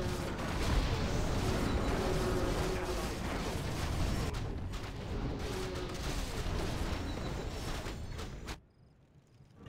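Weapons clash and clang in a noisy battle.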